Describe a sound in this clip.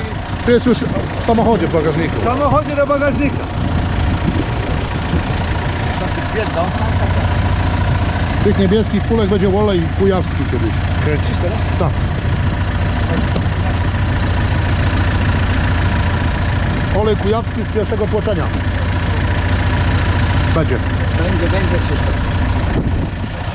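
A tractor engine idles steadily.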